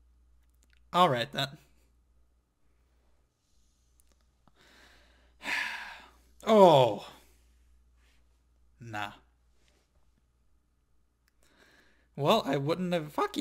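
A young man speaks emotionally into a close microphone, in short bursts.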